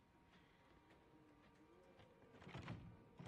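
A young man speaks quietly.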